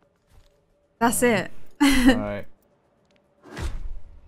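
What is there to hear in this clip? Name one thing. A young woman exclaims with excitement close to a microphone.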